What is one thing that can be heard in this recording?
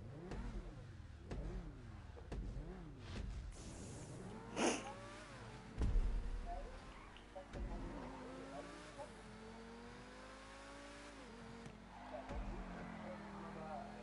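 A race car engine revs and roars, rising and falling in pitch.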